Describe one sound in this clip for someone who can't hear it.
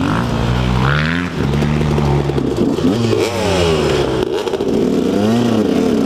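A second dirt bike engine buzzes nearby.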